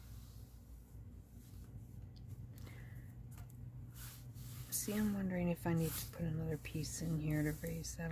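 Hands slide and rub across sheets of paper.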